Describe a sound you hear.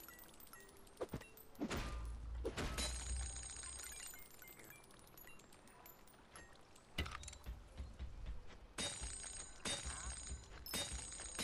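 Soft game menu clicks sound as items are selected.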